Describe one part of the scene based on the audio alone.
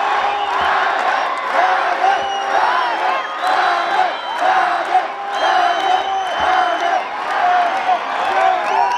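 A large crowd claps in rhythm.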